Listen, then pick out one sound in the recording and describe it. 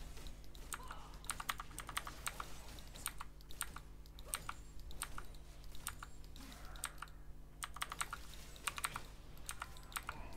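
Video game combat effects clash and zap in quick bursts.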